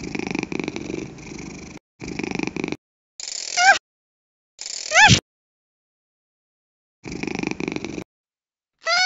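A cartoon cat purrs in soft bursts.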